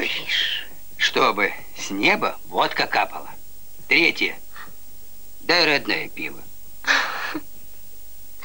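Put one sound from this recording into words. An elderly man speaks earnestly, close by.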